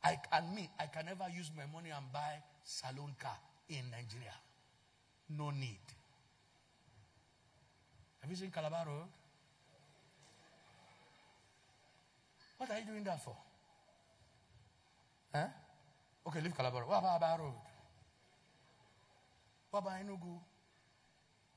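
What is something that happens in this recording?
A man speaks with animation into a microphone, heard over a loudspeaker in a large hall.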